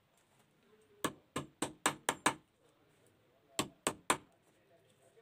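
A hammer taps sharply in quick bursts of blows.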